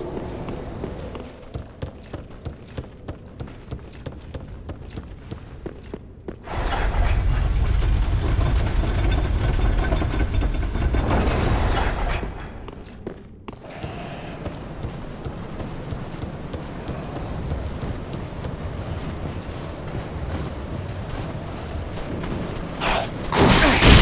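Armoured footsteps clank quickly and steadily.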